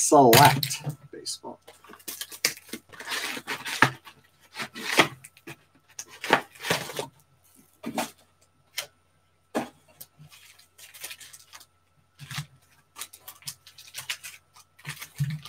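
Plastic-wrapped card packs crinkle and rustle in someone's hands.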